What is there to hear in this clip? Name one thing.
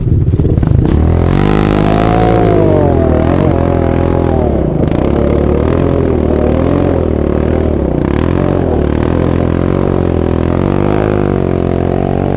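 Motorbike engines idle and rev gently nearby.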